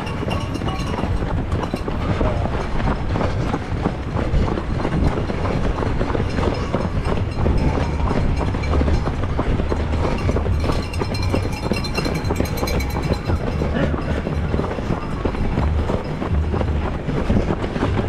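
Running footsteps patter steadily on pavement.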